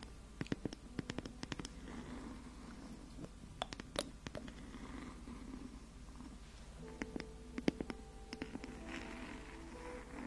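Long fingernails tap and scratch on a lid close to a microphone.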